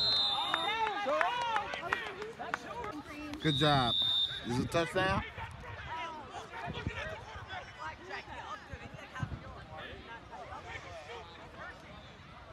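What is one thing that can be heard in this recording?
Many young players call out to each other across an open field.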